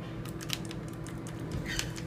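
A finger clicks an elevator button.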